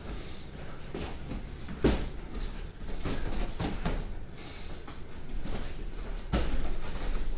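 Boxing gloves thump against pads and bodies in quick bursts.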